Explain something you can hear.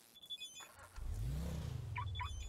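A car engine starts and idles.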